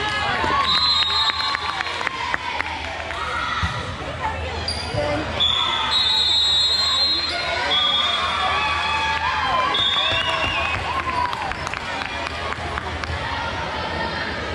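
Young girls call out and cheer in a large echoing hall.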